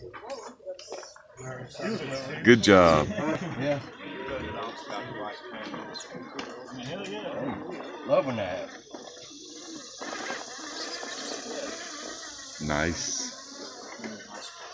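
A small electric motor whines as a toy truck crawls over rock.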